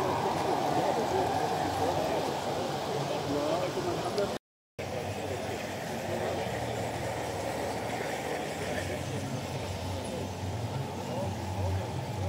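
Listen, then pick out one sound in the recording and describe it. A crowd of adults chats outdoors.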